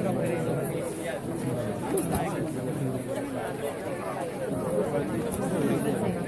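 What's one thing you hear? A large crowd of men and women chatter and call out together outdoors.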